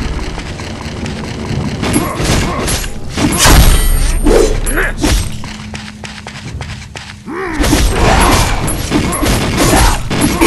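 Blades slash and strike in quick bursts.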